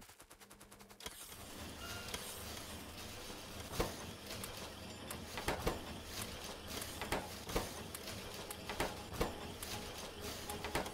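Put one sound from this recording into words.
Machines hum and clank steadily.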